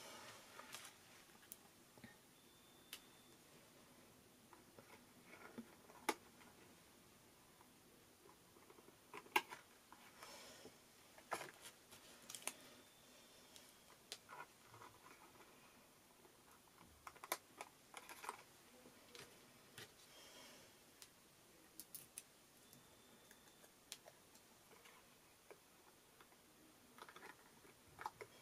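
Small taps and clicks sound as items are set down and pressed.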